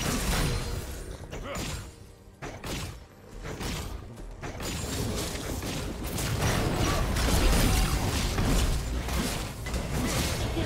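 Magic blasts, hits and explosions crash and crackle in a fast game battle.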